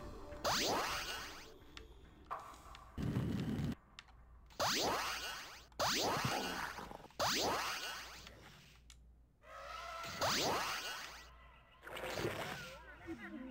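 Game sound effects sweep downward in pitch, again and again.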